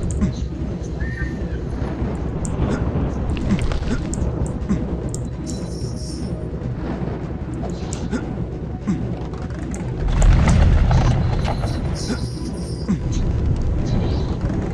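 A young man talks close to a microphone.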